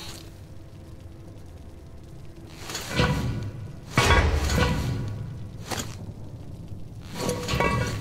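A metal grate rattles and scrapes as hands pull on it.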